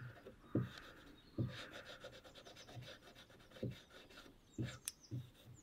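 Dull knocks sound on a wooden table.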